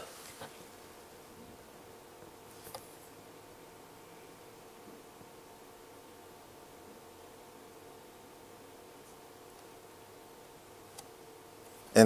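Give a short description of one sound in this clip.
A finger presses buttons on a multimeter with soft clicks.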